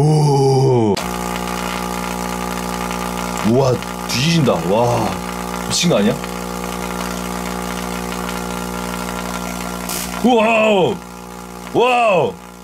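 A small tesla coil buzzes steadily as its spark crackles.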